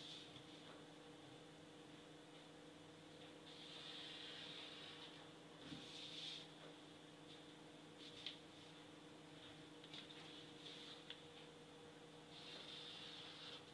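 A marker squeaks as it draws lines on paper.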